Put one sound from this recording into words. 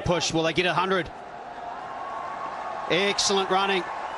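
A crowd cheers in a large open stadium.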